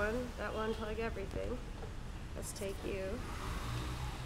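A woman talks close by.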